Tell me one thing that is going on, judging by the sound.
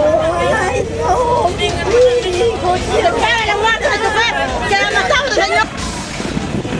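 A woman wails and sobs loudly close by.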